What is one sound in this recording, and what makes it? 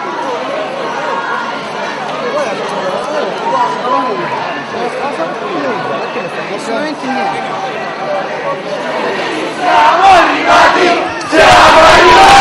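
A crowd of young people chatters and shouts close by.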